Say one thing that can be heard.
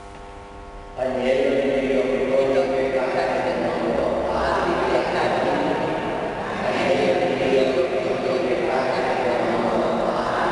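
A man's voice sounds through a microphone in a large echoing church.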